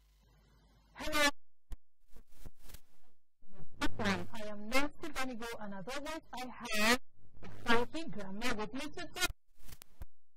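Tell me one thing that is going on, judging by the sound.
A woman speaks calmly into a close microphone.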